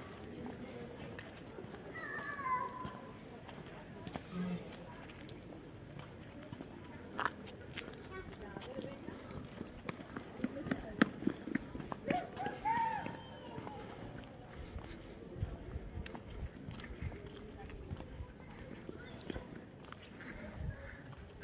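Footsteps tap on cobblestones at a steady walking pace.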